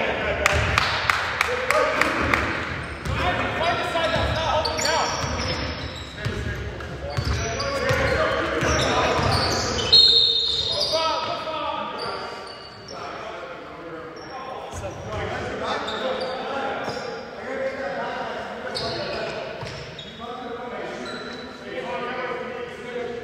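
Men shout to each other across an echoing hall.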